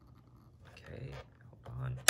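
A game console's switch clicks under a finger.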